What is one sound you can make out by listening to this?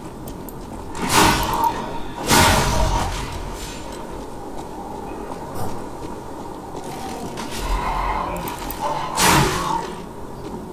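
Heavy blows thud and crash as a fighter lands on an enemy.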